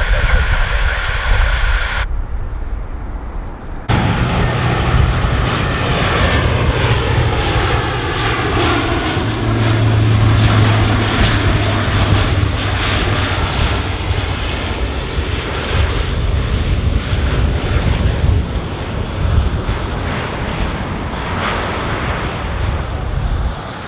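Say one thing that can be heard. A propeller aircraft drones loudly overhead with a deep, throbbing roar.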